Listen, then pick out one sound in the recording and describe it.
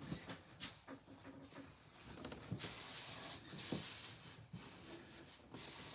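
A cloth rustles as a man wipes his hands.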